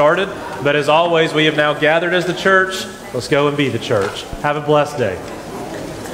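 A man speaks with animation through a microphone in a large echoing room.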